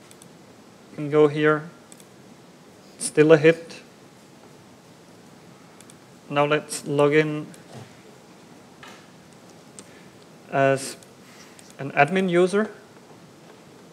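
A man speaks into a microphone in short bursts, calmly explaining.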